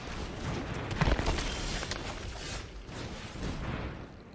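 A magical whoosh sweeps across as a card is played.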